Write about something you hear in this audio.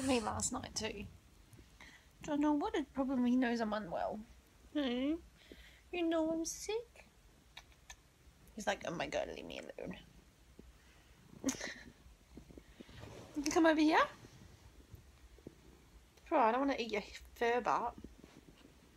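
A young woman talks close by in a playful, cooing voice.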